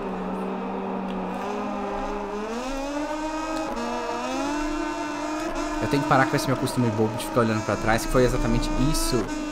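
A motorcycle engine whines and rises in pitch as it accelerates through the gears.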